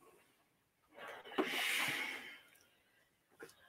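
A steam iron hisses briefly.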